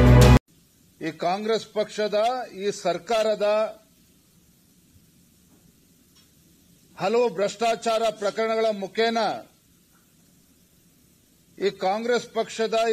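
A man speaks with animation into a microphone.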